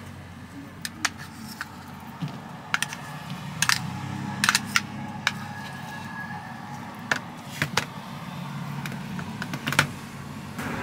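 Metal tongs click and clack against a plastic tray.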